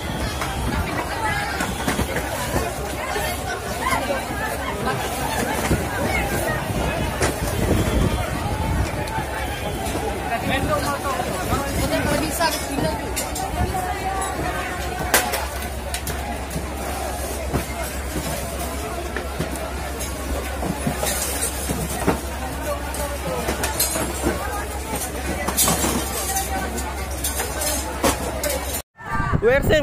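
Cardboard boxes thud and scrape as they are grabbed and dragged.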